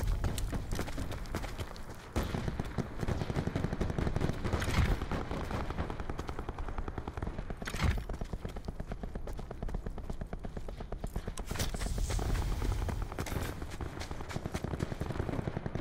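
Quick footsteps run over dry ground.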